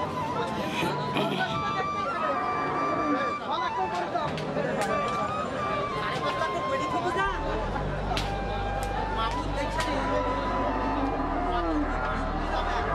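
A crowd of men chatter outdoors.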